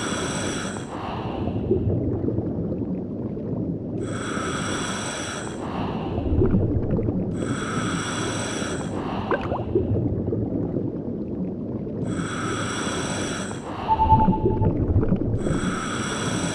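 Air bubbles rush out of a diver's breathing regulator every few seconds.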